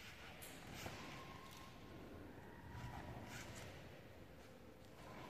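Bare feet shuffle and thud on a soft mat.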